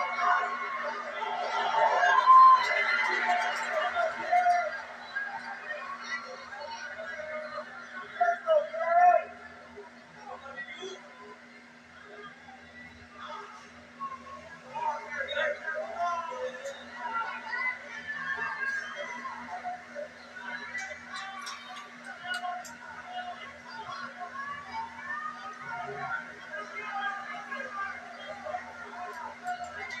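A large crowd cheers and shouts, loudest at the start and in short bursts.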